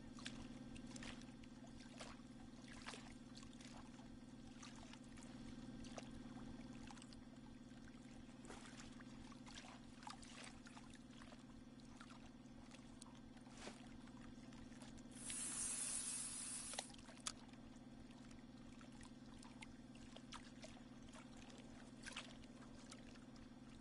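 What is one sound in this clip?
A boat's electric motor hums steadily.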